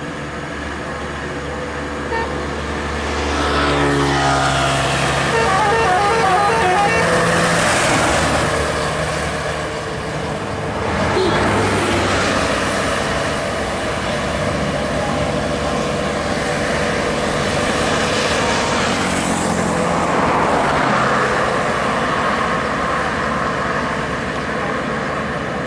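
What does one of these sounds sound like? A bus engine roars as it drives past.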